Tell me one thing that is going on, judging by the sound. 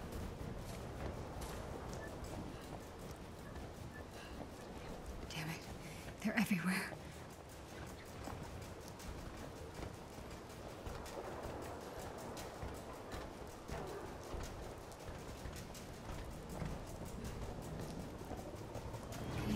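Quick footsteps run over pavement.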